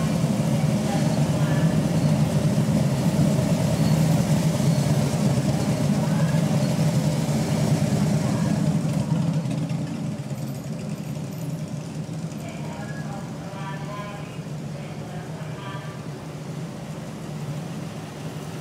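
A car engine hums as a vehicle rolls slowly past.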